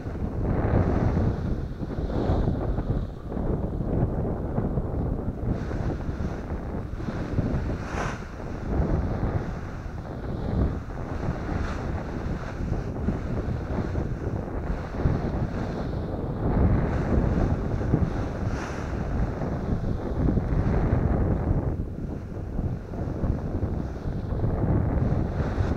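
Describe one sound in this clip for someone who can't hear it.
A paraglider wing flaps and rustles in the wind.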